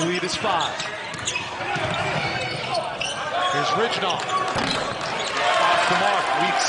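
A crowd murmurs in a large echoing arena.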